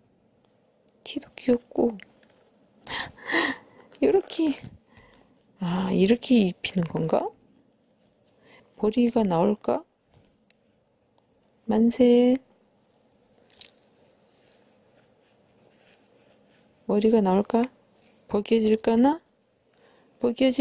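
Fabric rustles softly as a doll's clothes are pulled on and off.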